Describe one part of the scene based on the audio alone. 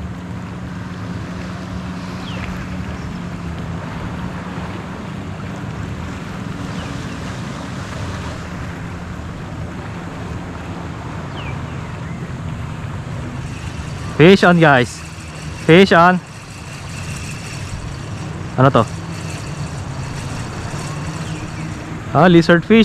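Shallow water laps gently against the shore.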